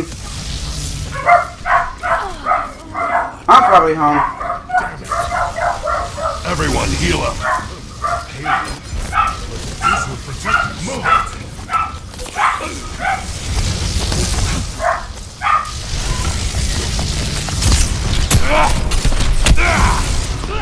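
An electric beam weapon crackles and buzzes in short bursts.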